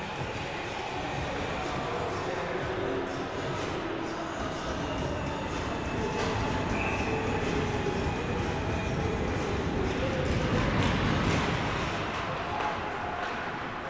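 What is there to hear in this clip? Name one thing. Skates scrape across the ice in a large echoing arena.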